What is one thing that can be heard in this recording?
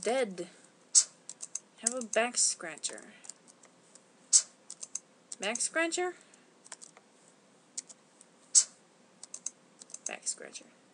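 Short electronic menu blips click now and then.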